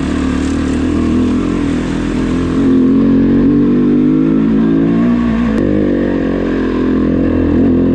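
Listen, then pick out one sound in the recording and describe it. A motorcycle engine revs and drones steadily, close by.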